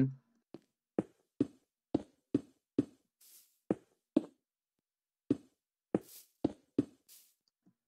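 Stone blocks are placed one after another with short, dull knocks.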